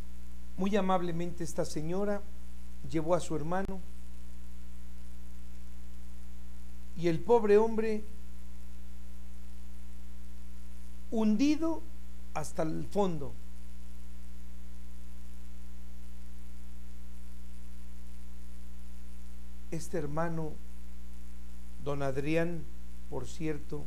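An elderly man speaks calmly into a microphone in short phrases with long pauses.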